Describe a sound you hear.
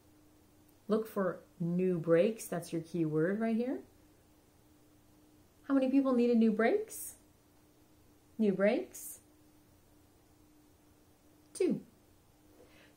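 A young woman speaks calmly and clearly close to a microphone, in short phrases with pauses.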